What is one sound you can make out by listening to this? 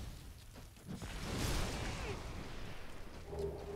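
A fireball bursts with a loud roar.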